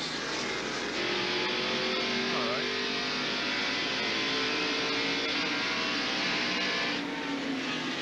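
An engine revs loudly from inside a race car.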